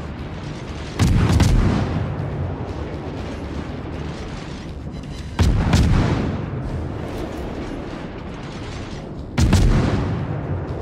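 Heavy naval guns fire in booming salvos that rumble away.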